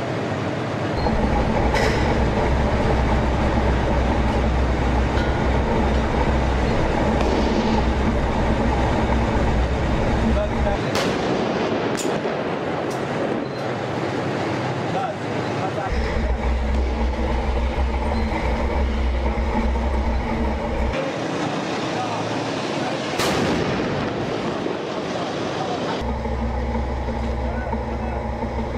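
A tank engine rumbles loudly and clatters nearby.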